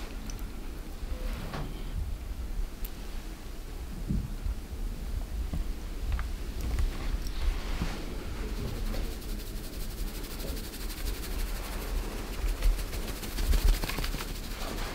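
Hands rub and rustle through hair close up.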